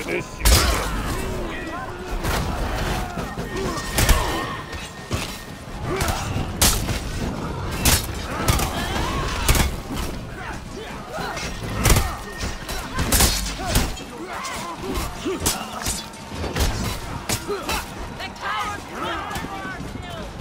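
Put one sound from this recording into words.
A crowd of soldiers shouts and yells in battle.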